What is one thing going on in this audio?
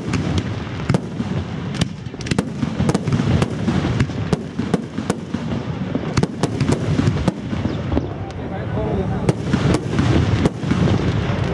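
Fireworks pop and crackle overhead.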